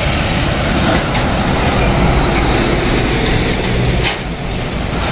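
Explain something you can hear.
A truck engine roars close by as it passes.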